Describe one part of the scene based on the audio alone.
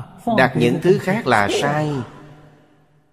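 An elderly man speaks warmly and cheerfully into a close microphone.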